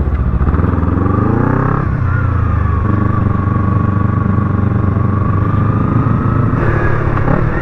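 A motorcycle engine rumbles close by, revving up and easing off.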